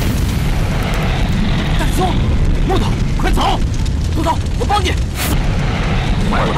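A young man speaks urgently.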